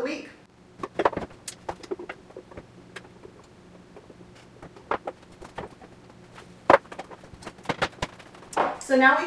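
Glass clinks against a countertop.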